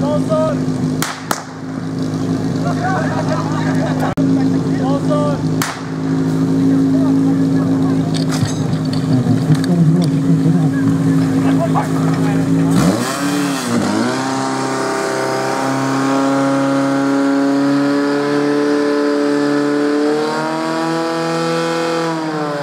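An engine pump drones steadily, then dips and revs higher.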